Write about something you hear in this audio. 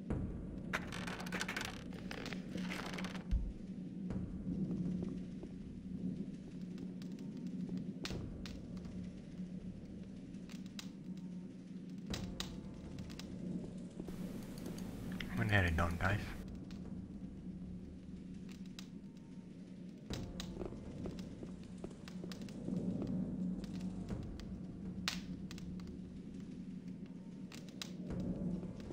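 Footsteps tread on a stone floor in an echoing space.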